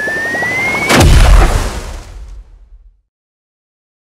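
A game explosion booms loudly and fades.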